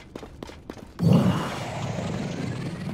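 A loud rushing whoosh bursts up and roars on.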